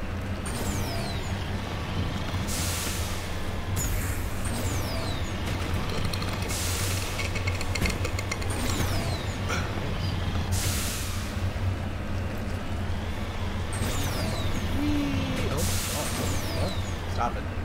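Thrusters roar in short bursts.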